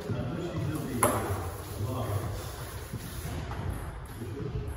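A table tennis ball clicks sharply off a paddle in a large echoing hall.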